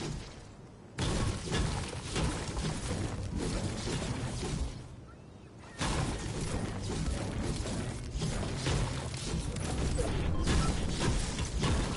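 A pickaxe strikes rock again and again.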